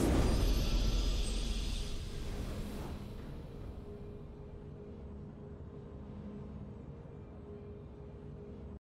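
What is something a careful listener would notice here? A triumphant game victory jingle swells and slowly fades.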